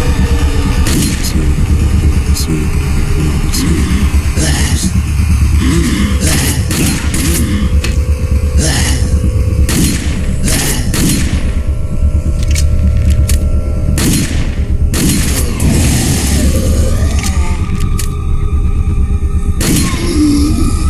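Pistol shots ring out one at a time in a large echoing hall.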